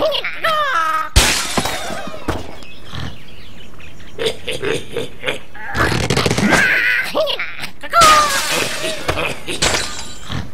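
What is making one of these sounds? Glass and wooden blocks crash and shatter.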